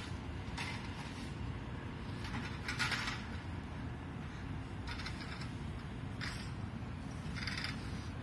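A hand cart rattles as its wheels roll over pavement.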